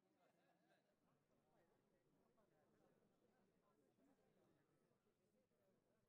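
An older man talks calmly up close.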